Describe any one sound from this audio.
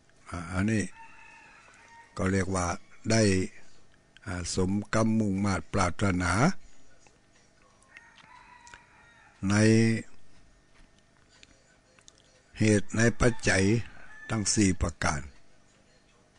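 An elderly man chants slowly into a microphone, in long drawn-out phrases with pauses.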